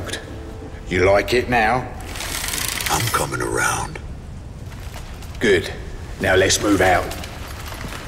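A man speaks in a low, urgent voice close by.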